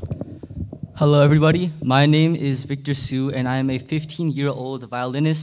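A young man speaks calmly into a microphone over loudspeakers.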